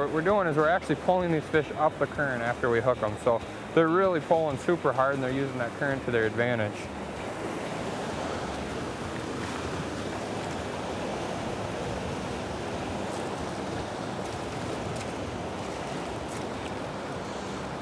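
A fast river rushes steadily nearby.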